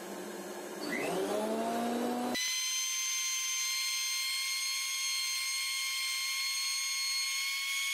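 An electric planer motor spins up with a rising whine and then runs with a steady high hum.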